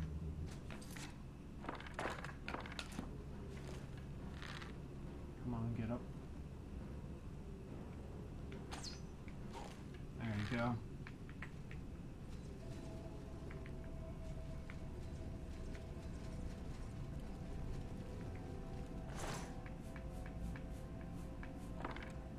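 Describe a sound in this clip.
Short clicks tick as items are scrolled through.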